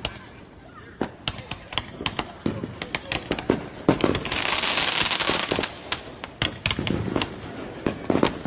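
Fireworks bang and crackle outdoors in quick bursts.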